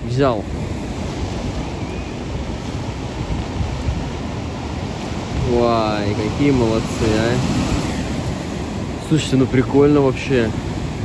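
Waves break and wash steadily against a rocky shore.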